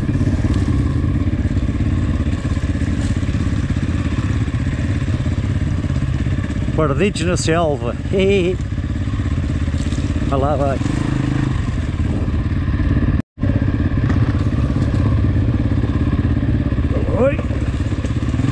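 A dirt bike engine rumbles steadily close by.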